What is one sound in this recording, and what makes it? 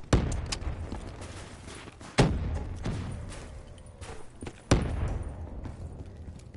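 Loud explosions boom and rumble away.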